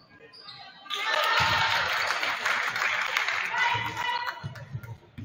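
A crowd in an echoing gym cheers loudly after a basket.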